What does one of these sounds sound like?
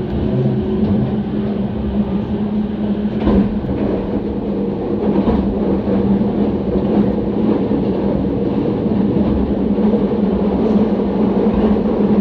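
An electric commuter train runs at speed, heard from inside the carriage.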